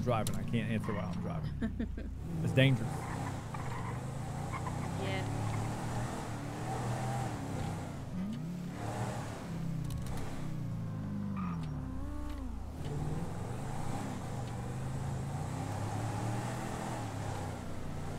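A car engine hums and revs as a vehicle drives along.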